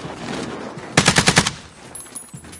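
A machine gun fires a short, rapid burst.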